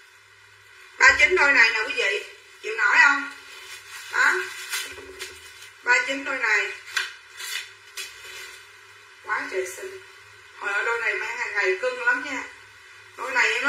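A middle-aged woman talks with animation close by, in short bursts.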